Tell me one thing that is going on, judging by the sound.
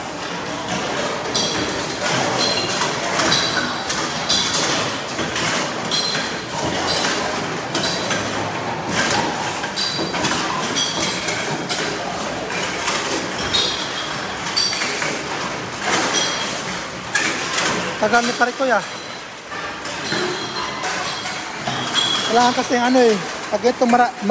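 A conveyor belt rattles and hums steadily nearby.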